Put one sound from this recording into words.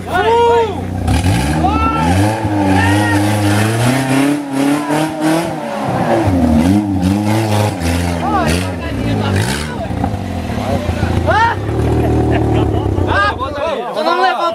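An off-road vehicle's engine revs hard, rising and falling.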